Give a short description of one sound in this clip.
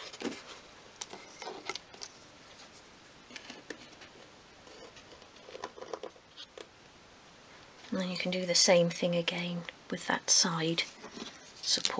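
Small wooden pieces tap and click lightly against a wooden surface.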